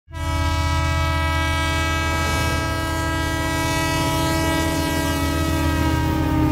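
A locomotive engine rumbles as a train rolls slowly along.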